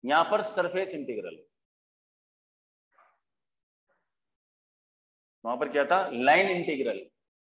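A man explains something calmly, close by, with pauses.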